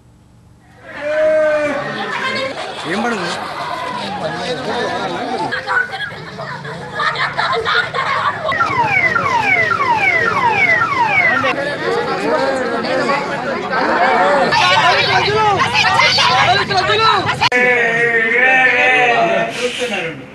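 A crowd of men talks and shouts excitedly.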